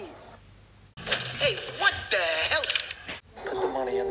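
A middle-aged man shouts in alarm.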